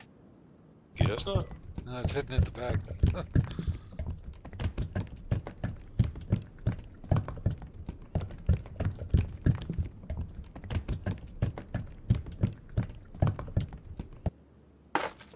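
Liquid glugs and gurgles as it pours from a bottle.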